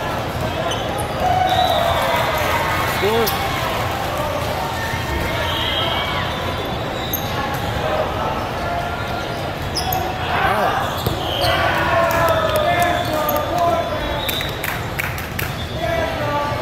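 Many voices chatter and call out in a large echoing hall.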